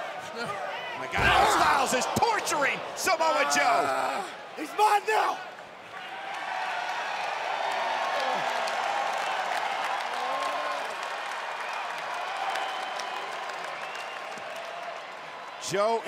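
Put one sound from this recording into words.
A large crowd cheers and roars in a big hall.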